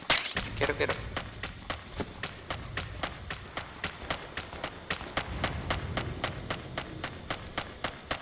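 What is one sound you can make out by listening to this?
Quick footsteps run steadily over hard ground.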